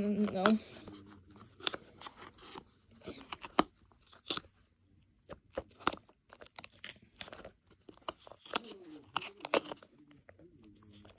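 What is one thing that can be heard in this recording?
A plastic package crinkles and clicks in a hand.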